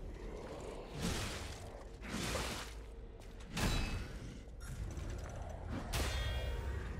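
Heavy metal blades clash with loud ringing impacts.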